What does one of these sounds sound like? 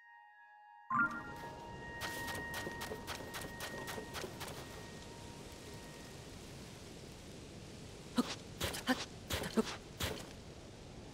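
Quick footsteps crunch softly on sand.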